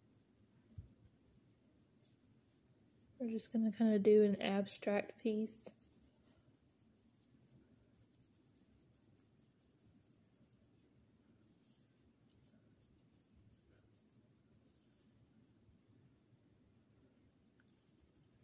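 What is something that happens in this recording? A paintbrush softly strokes across paper.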